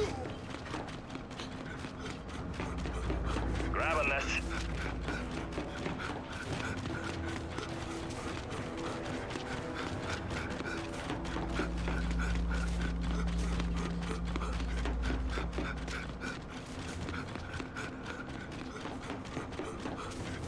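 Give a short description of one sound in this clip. Heavy footsteps thud quickly on hard ground.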